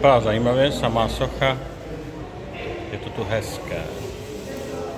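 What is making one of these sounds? A middle-aged man talks calmly and close by in an echoing hall.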